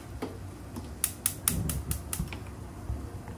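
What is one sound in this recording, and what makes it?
A gas stove igniter clicks rapidly several times.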